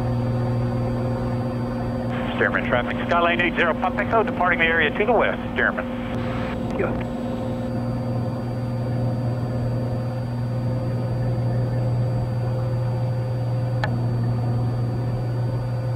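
A small plane's engine drones steadily throughout.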